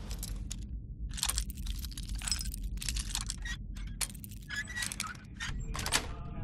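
A metal pick scrapes and rattles inside a lock in short bursts.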